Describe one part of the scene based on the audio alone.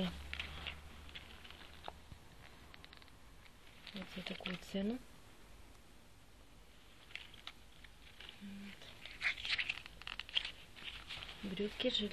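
Fabric rustles as hands handle clothing.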